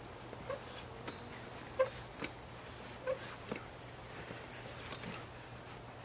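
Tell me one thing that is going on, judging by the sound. A folding camp chair creaks and clicks as a man settles into it.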